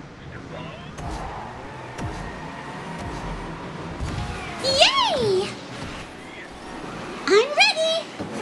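Race car engines rumble and rev as several cars speed off.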